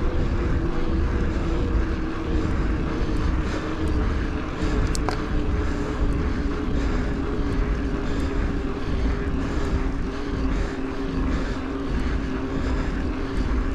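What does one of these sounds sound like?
Wind rumbles loudly across the bike's microphone.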